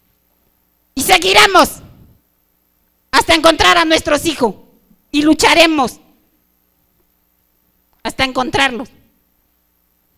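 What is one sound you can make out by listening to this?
A man speaks in short phrases through a loudspeaker in a large hall.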